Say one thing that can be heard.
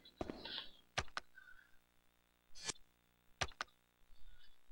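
Short game menu clicks sound several times.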